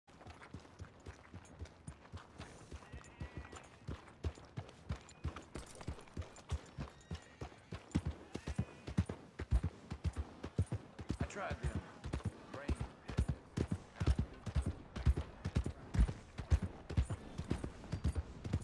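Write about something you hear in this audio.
Horse hooves clop steadily on a dirt road.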